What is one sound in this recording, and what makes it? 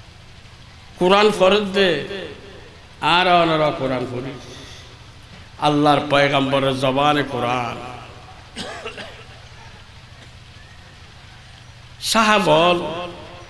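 An elderly man preaches into a microphone in short, forceful bursts with long pauses between them.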